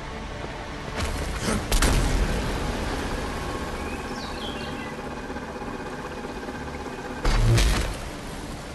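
Electric beams crackle and buzz steadily.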